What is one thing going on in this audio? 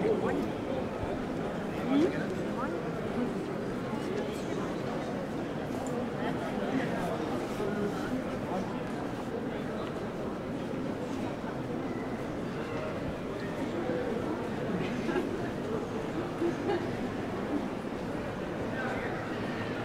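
A crowd of people chatters in a busy pedestrian street outdoors.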